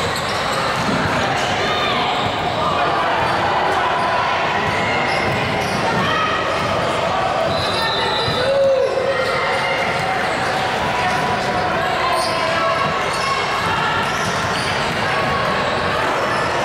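Young women call out to one another across an echoing gym.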